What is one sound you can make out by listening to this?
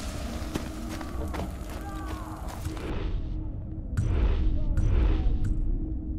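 A fire crackles softly nearby.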